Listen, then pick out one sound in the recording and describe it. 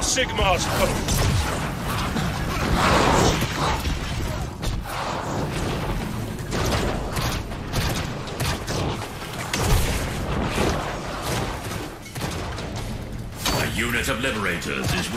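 Weapons clash and clang in a battle.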